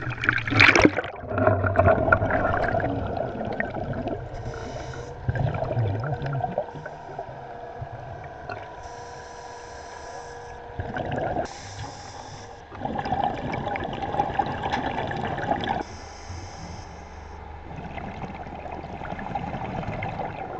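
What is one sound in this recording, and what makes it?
Bubbles gurgle and hiss underwater.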